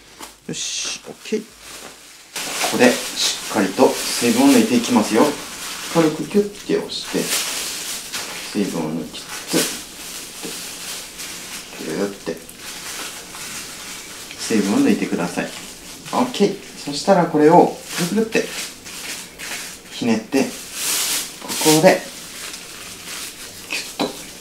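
A plastic bag crinkles as it is squeezed.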